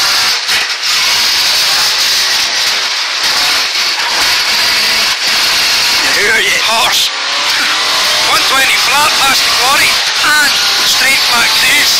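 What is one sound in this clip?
A rally car engine roars loudly and revs up and down.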